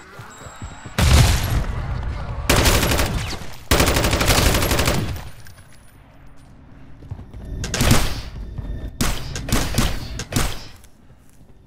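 Rapid gunfire bursts from a rifle.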